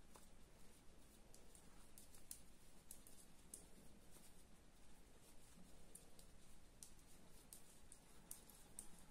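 Knitting needles click and tick softly against each other.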